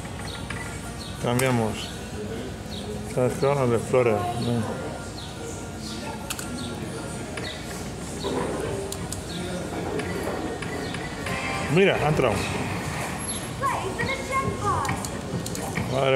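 A slot machine plays bright electronic jingles and chimes.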